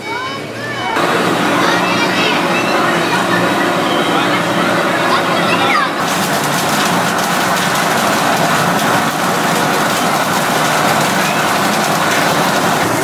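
A processing machine clatters and hums steadily.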